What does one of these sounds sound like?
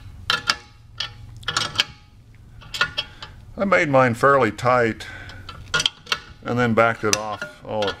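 A metal wrench clicks against a bolt as a nut is tightened.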